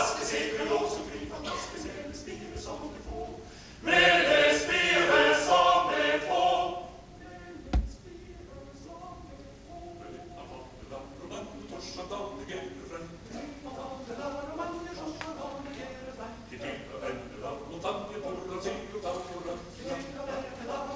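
A choir of men sings together in harmony, loudly at times and softly at others.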